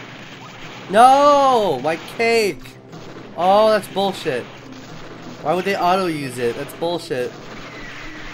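Explosions boom in quick bursts.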